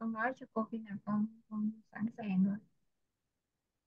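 A woman speaks clearly over an online call.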